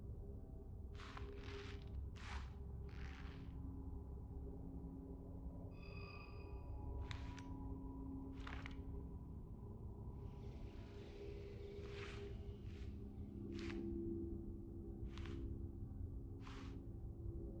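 Short, soft menu clicks sound now and then.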